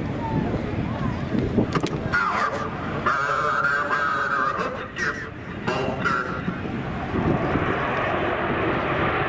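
A jet engine roars loudly as a fighter plane takes off.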